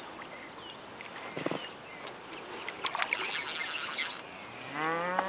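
A fish splashes and thrashes at the water's surface.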